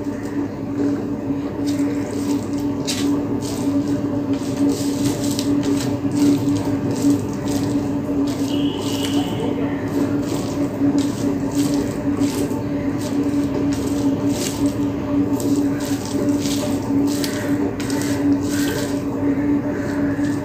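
Fingers mix and squish rice on a plate.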